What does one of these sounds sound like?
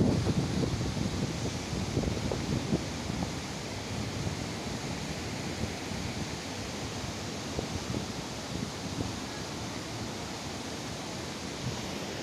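Floodwater rushes past outdoors.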